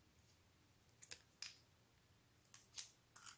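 Small plastic pieces click and tap lightly on a wooden surface.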